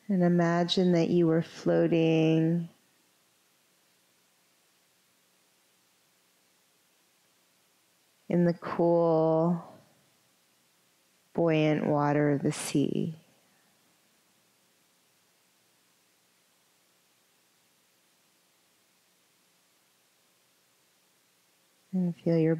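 A woman speaks calmly and softly, close to a microphone, with long pauses.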